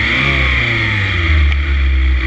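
A motorcycle engine revs and its pitch quickly drops close by.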